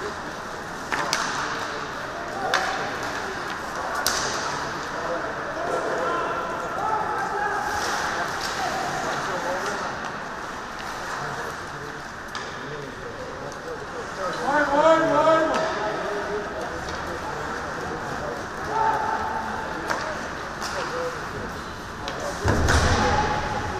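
Hockey sticks clack against a puck now and then.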